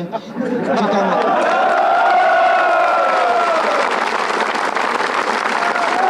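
A middle-aged man speaks loudly through a microphone and loudspeaker outdoors.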